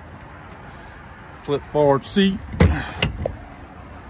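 A padded boat seat is folded over with a thump.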